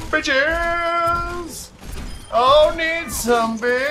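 A weapon fires a shot that bursts on impact.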